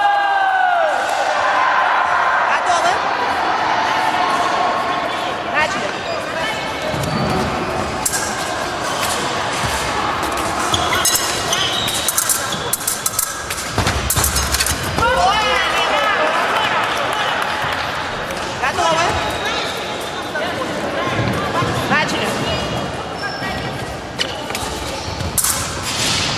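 Fencers' shoes squeak sharply on a wooden floor in a large echoing hall.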